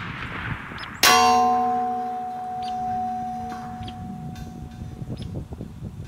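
A steel target rings out when struck and slowly fades.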